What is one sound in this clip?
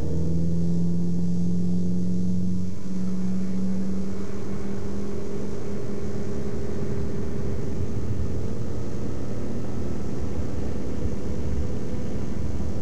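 A small plane's propeller engine roars steadily.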